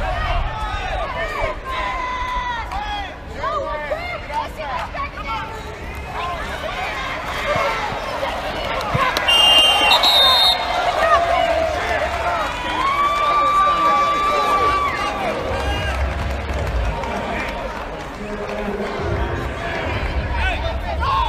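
A large crowd cheers and shouts in an open stadium.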